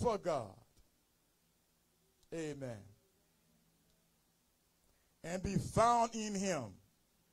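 A man preaches with emphasis through a microphone, in short bursts with pauses.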